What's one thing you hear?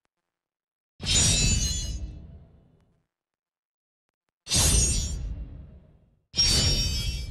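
Bright shimmering chimes ring out in short bursts.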